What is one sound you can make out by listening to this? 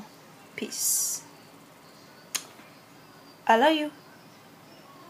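A young woman speaks briefly and playfully, close by.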